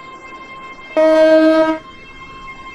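A train horn blares once, loud and short.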